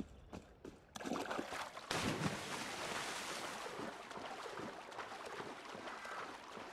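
Water splashes as a figure dives in and swims.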